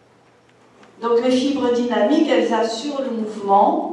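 A woman speaks calmly into a microphone, heard through loudspeakers.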